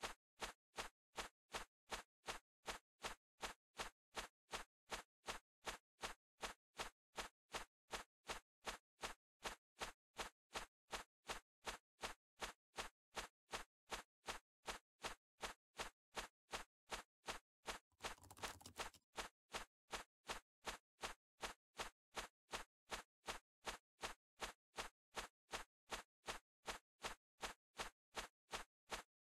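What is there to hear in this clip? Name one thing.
Quick footsteps run steadily over a stone path.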